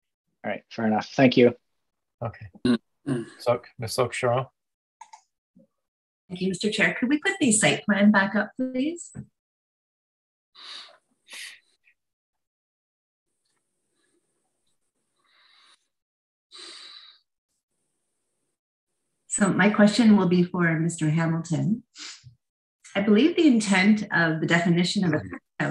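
A woman speaks calmly through an online call, pausing between phrases.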